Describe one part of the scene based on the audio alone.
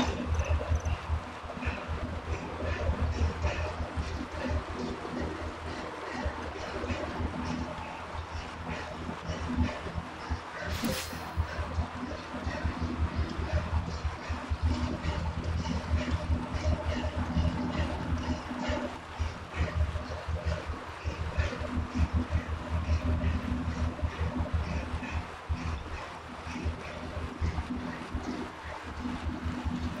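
A bike trainer whirs steadily as someone pedals hard.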